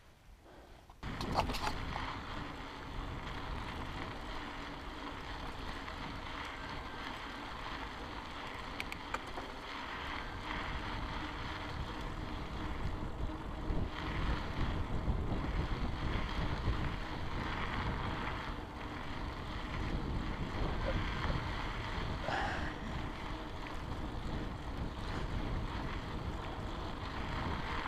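Bicycle tyres crunch and rumble over a rough dirt track.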